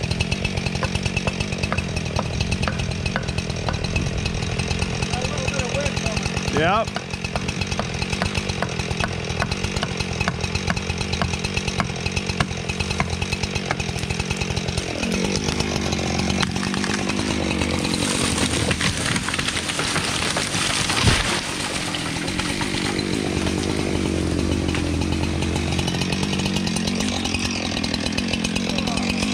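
A chainsaw engine runs and cuts through wood close by.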